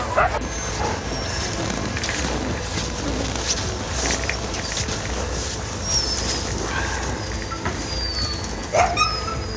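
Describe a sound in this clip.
Many dogs howl and yip in the distance, outdoors.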